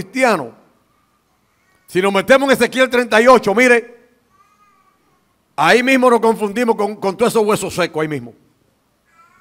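A man preaches loudly and with passion through a microphone, in a reverberant hall.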